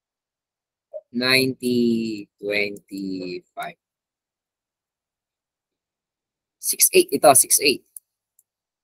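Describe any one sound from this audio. A young man speaks calmly into a microphone, in short bursts.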